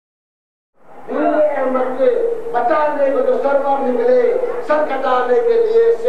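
A man chants in a strong voice with long held notes.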